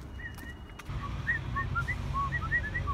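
A woman whistles short notes close by.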